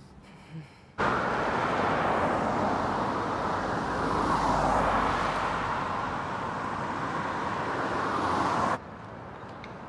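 Cars rush past on a road.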